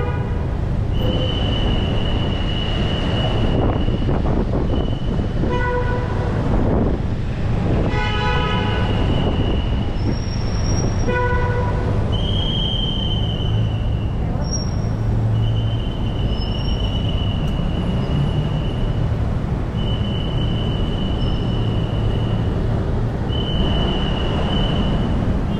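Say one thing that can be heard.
A traffic warden blows long blasts on a whistle.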